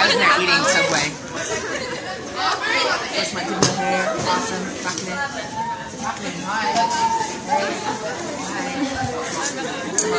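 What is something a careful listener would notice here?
Young women chat and laugh nearby.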